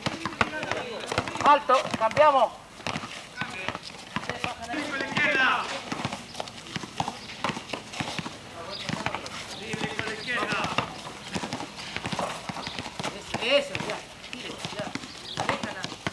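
Basketballs bounce on a hard court.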